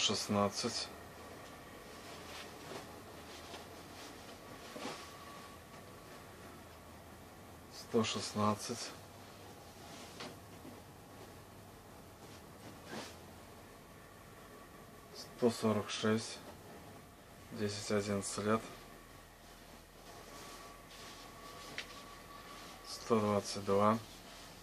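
Padded jacket fabric rustles and swishes as hands handle it.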